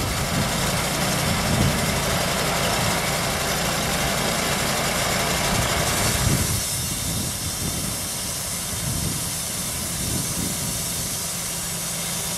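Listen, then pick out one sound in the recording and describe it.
A sawmill engine runs loudly and steadily outdoors.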